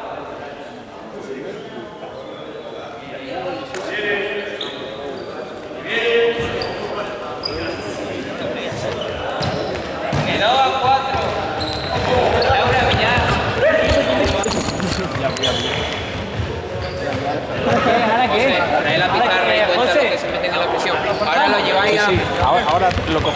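Young men shout and chatter in an echoing sports hall.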